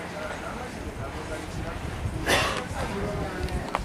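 A crowd of people murmurs and chatters nearby outdoors.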